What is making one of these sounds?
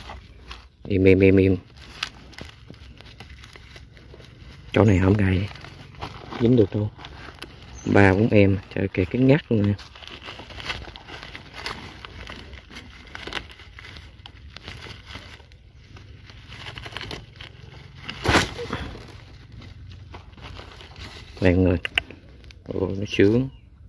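Dry leaves rustle and crackle as a snake is pulled from a trap.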